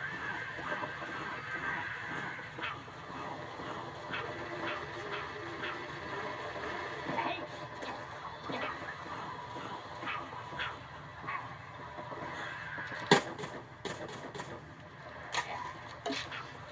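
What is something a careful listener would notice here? Cartoonish shots and game effects pop repeatedly through a television speaker.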